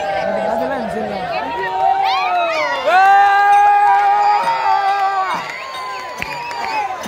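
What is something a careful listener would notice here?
A group of men and women sing loudly in high, wavering voices.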